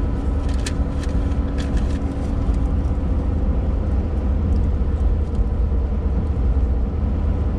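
Raindrops tap on a windshield.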